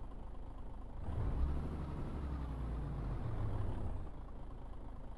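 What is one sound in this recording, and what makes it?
A diesel truck engine revs up with a deep roar.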